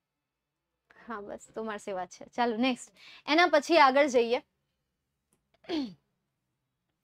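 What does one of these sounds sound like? A young woman speaks clearly into a close microphone, explaining with animation.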